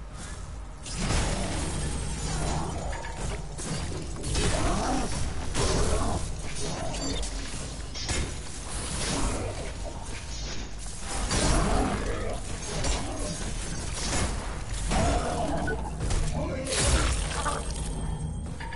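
Metal weapons clash and slice in a fierce melee fight.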